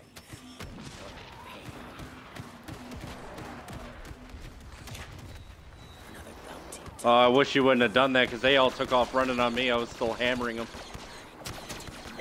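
Blaster rifles fire in quick bursts of shots.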